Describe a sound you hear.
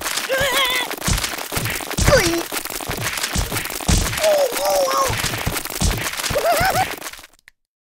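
A cartoon creature groans and squeals in a high, wobbly voice.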